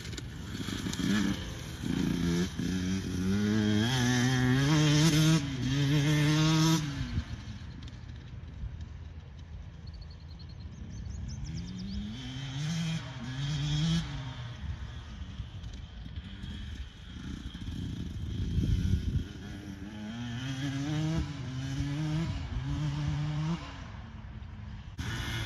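A dirt bike engine revs and shifts gears, rising and falling in pitch, loud up close and then farther off.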